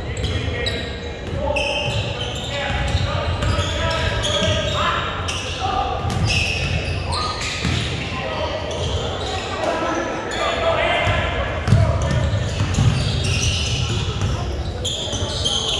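A crowd of spectators chatters and cheers in an echoing gym.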